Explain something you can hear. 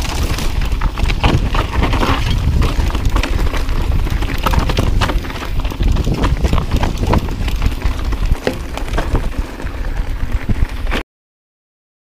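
A bicycle frame clatters and knocks over bumps.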